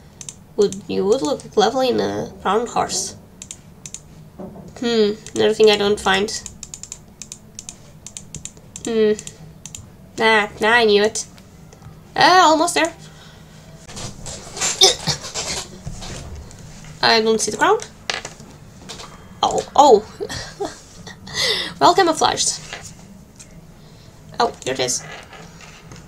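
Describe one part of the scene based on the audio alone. A young woman talks with animation into a microphone, in short bursts with pauses.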